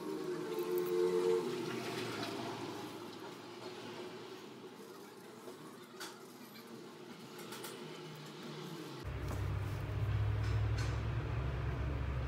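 Hands rub and squeeze soft wet plaster close by.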